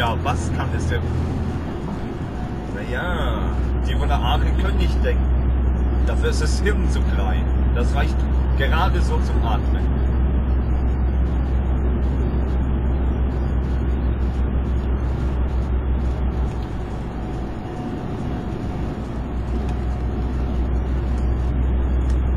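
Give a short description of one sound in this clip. Tyres roll with a steady rumble on the road.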